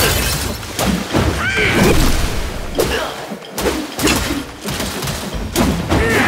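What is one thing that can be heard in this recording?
Water splashes under stomping feet.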